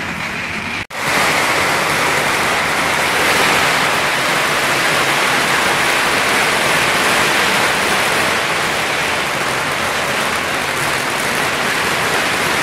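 Firecrackers crackle rapidly and continuously down the street.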